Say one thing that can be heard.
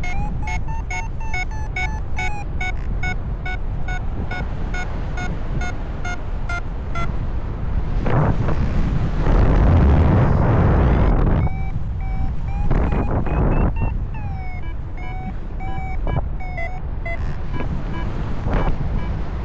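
Wind rushes loudly past a paraglider in flight, swelling in gusts.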